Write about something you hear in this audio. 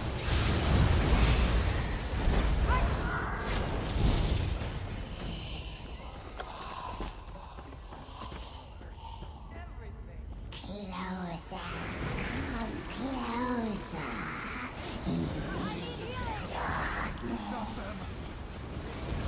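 Magic blasts crackle and boom in a fight.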